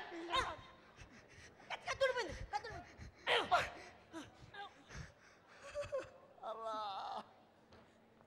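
A young man speaks with animation through a microphone over loudspeakers in a large hall.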